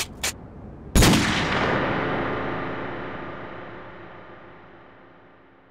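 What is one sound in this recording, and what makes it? A pistol fires a single loud shot close by, and the shot rings out and slowly fades.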